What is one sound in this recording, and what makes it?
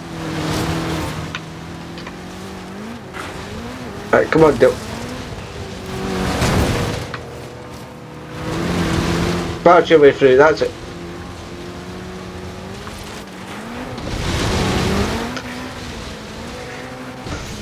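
A car engine hums and revs up as the car speeds along.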